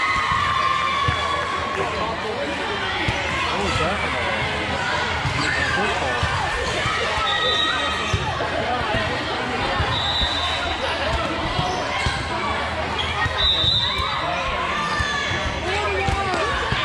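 Girls' voices chatter and call out across a large echoing hall.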